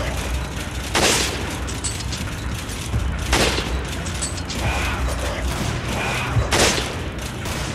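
A rifle fires loud single shots that echo briefly.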